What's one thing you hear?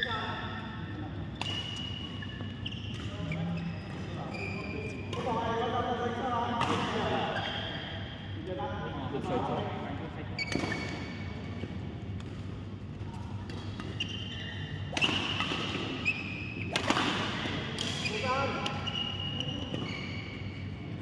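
Adult players call out and talk in a large echoing hall.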